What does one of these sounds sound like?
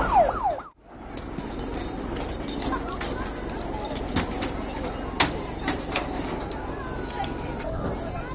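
Metal clanks as firefighters handle hose fittings.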